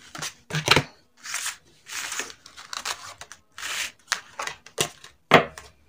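Paper cards slide and rustle on a tabletop.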